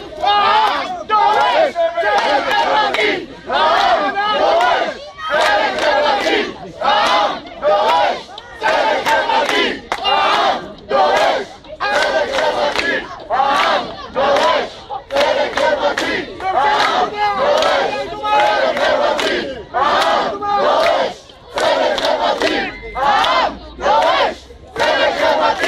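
A crowd of men and women chants slogans loudly in a rhythmic call, close by outdoors.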